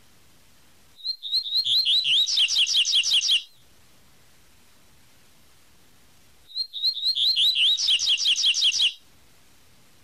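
A small songbird sings a fast series of high, sweet whistled notes, twice.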